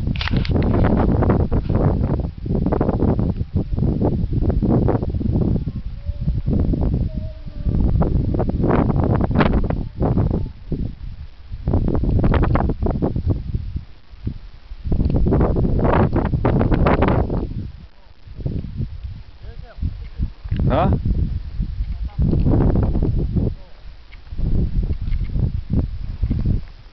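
Wind gusts roar against the microphone outdoors, coming and going in strong bursts.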